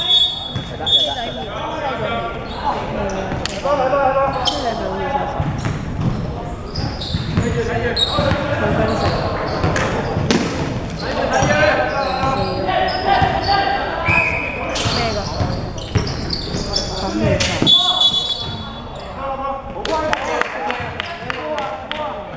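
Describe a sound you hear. Sneakers squeak sharply on the wooden floor.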